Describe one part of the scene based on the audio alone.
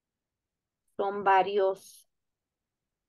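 A woman speaks briefly over an online call.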